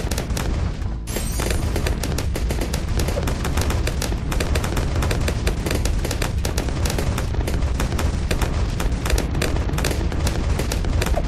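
Small shots fire and crackle rapidly.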